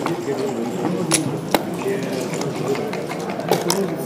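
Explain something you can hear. A game clock button is pressed with a sharp click.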